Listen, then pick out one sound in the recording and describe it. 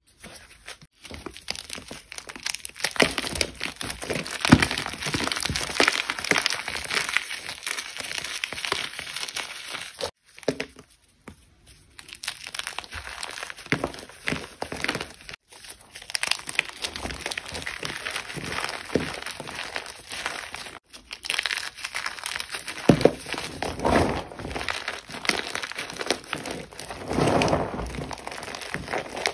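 Chalky lumps crunch and crumble as a hand squeezes them, close up.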